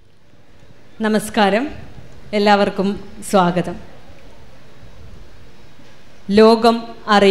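A woman speaks calmly through a microphone.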